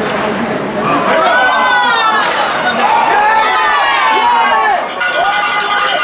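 A spectator shouts excitedly.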